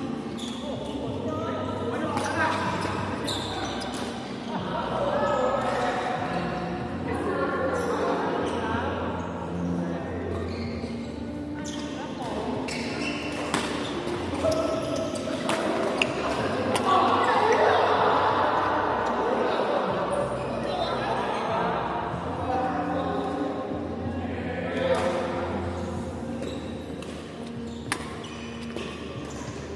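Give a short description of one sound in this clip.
Men and women chatter and call out across the hall.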